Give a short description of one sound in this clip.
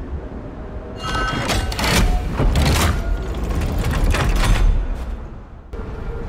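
A heavy door rumbles open.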